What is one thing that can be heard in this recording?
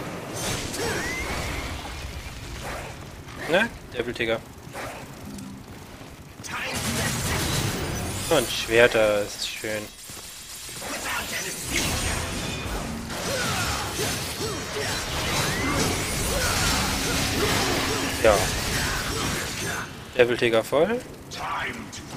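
Sword blades slash and clang in quick bursts.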